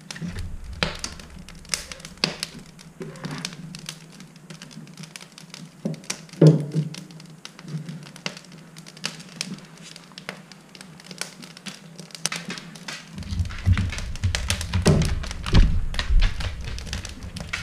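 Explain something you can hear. Logs knock and clunk as they are placed into a wood stove.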